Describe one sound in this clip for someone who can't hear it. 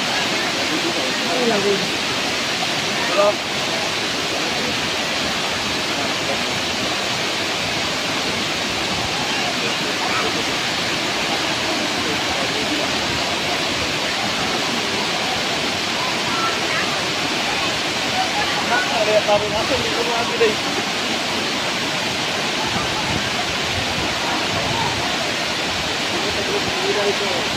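Waterfalls roar in a steady, rushing stream.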